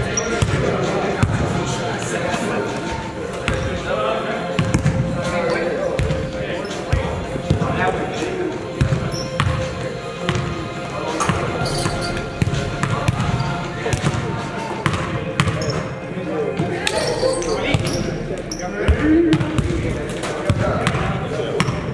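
Young men talk and call out across the court.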